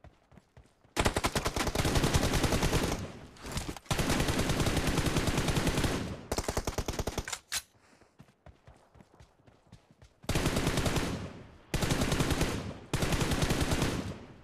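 Automatic gunfire rattles in rapid, long bursts.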